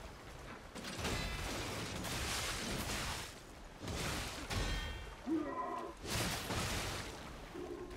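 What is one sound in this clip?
Swords clash and ring with heavy metallic blows.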